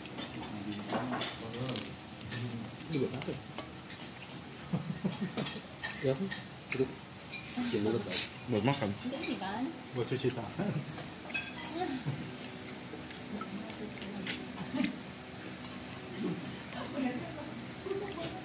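Crispy roast meat crackles and tears as it is pulled apart by hand.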